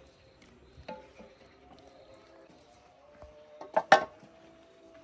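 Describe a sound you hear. A metal spoon scrapes and knocks against a metal pot.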